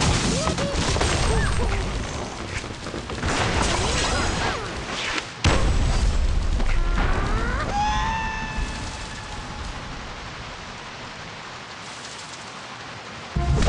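Wooden towers crash and clatter as they collapse.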